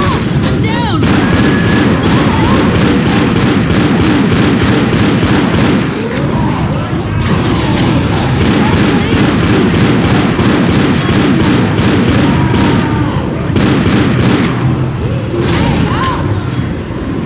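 Rapid pistol gunshots ring out in a game.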